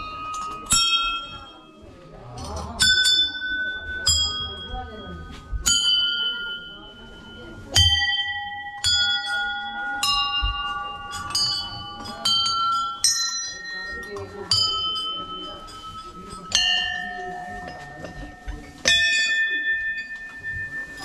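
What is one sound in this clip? Brass bells ring one after another as a hand strikes them, each ringing out and slowly fading.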